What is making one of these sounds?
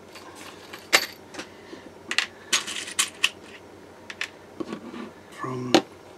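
A small metal tool clicks against a hard tabletop.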